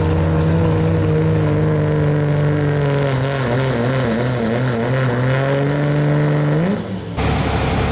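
A diesel truck engine roars loudly under heavy load, its pitch wavering.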